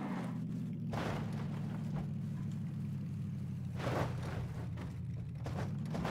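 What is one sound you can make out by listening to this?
Tyres crunch and rumble over dirt and rocks.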